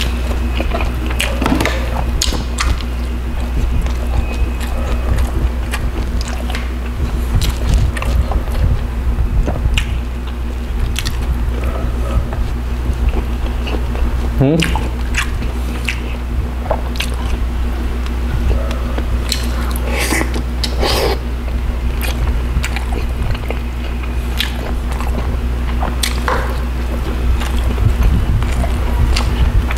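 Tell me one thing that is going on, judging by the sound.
A man chews food wetly and smacks his lips close to a microphone.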